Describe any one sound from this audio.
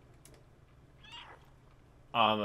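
A cat meows softly.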